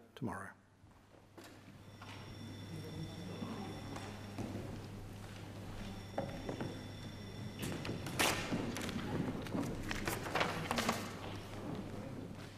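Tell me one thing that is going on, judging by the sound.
People murmur and shuffle about in a large echoing hall.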